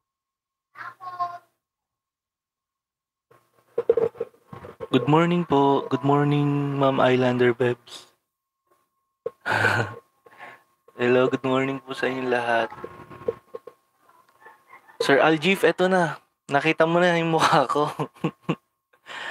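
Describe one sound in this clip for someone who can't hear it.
A young man sings with feeling, close to a microphone.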